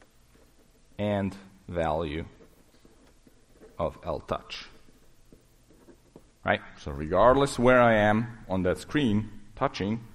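A man lectures through a microphone, pausing between phrases.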